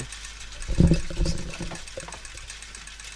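Metal gears clunk and click into place.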